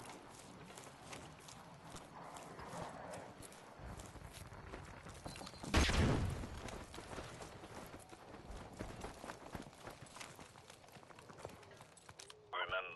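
Footsteps crunch steadily on grass and wooden boards.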